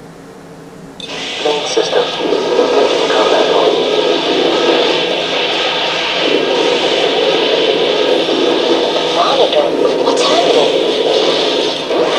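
Loud game music plays.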